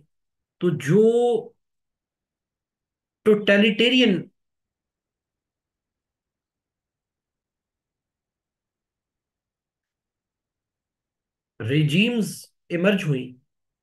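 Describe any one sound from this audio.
A man speaks calmly into a close microphone, in short phrases with long pauses.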